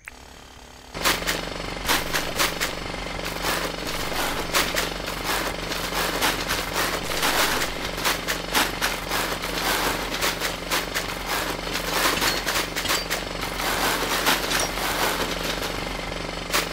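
A tool pounds the ground with quick, repeated thuds.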